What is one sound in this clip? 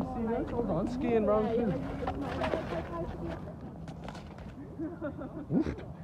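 Young men talk and laugh nearby.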